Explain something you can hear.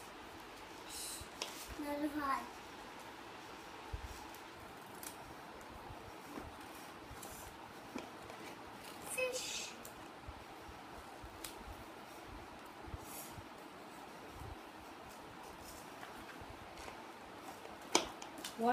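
Paper cards rustle as they are flipped.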